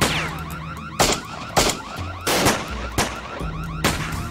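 Pistol shots crack loudly, echoing off walls.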